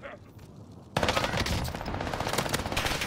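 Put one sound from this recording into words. A gun fires rapidly in a steady burst.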